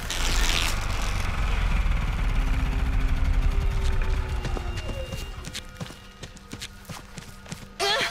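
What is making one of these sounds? Footsteps run over gravel.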